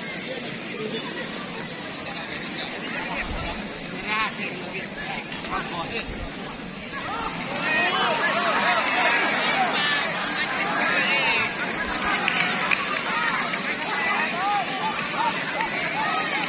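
A crowd of men shouts and cheers excitedly outdoors.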